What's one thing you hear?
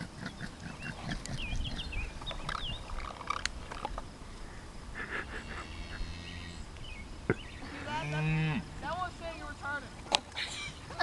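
A young boy calls out to the cows.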